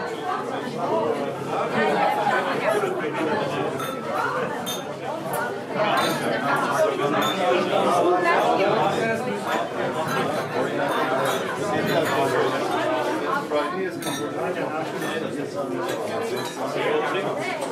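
A crowd of men and women chat and laugh nearby, in a lively hubbub.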